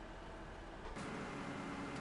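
A combine harvester engine rumbles.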